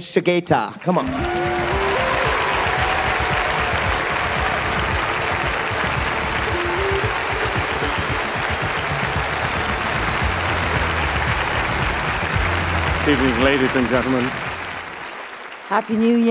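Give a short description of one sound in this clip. A large crowd applauds and cheers in an echoing hall.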